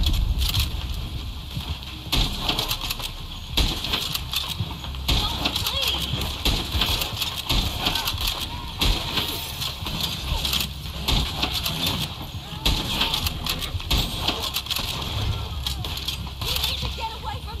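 A horse-drawn wagon rattles along over rough ground.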